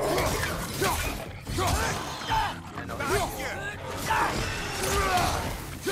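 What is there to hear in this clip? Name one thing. Heavy blows and weapon strikes thud and clash in a fight.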